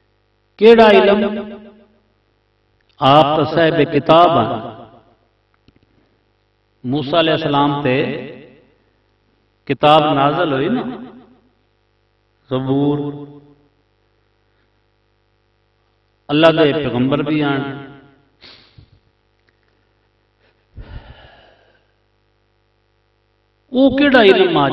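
A man speaks with feeling into a microphone over a loudspeaker, in short phrases with long pauses.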